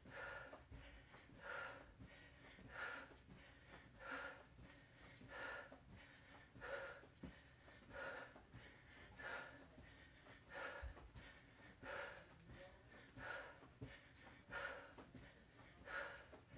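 A woman exhales sharply with each effort as she exercises.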